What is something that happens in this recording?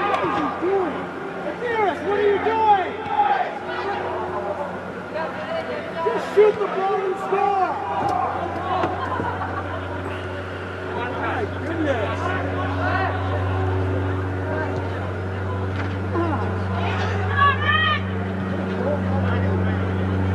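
Young players shout to each other across a large echoing hall.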